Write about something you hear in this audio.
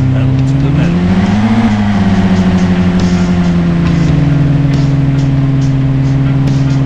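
A car engine hums steadily, rising and falling in pitch as it speeds up.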